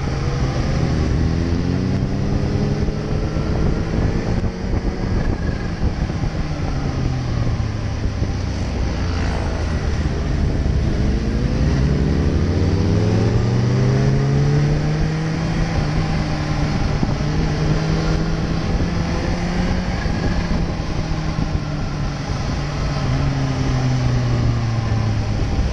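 A motorcycle engine roars up close, rising and falling in pitch as it speeds up and slows down.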